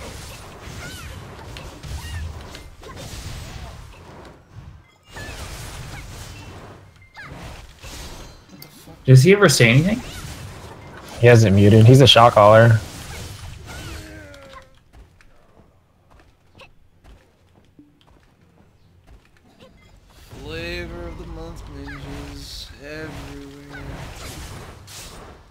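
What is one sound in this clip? Magic attacks whoosh and crackle in a fantasy battle.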